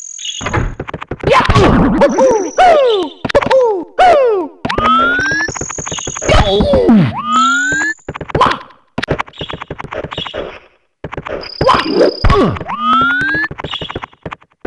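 A cartoon character grunts and yells with each jump.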